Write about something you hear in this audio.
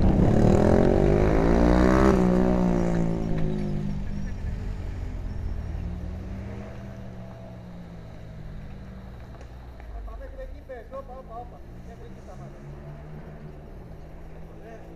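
A motorcycle engine revs loudly and then settles to a low idle.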